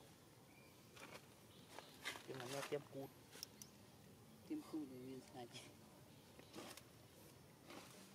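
A young monkey steps over dry leaves, rustling and crunching them.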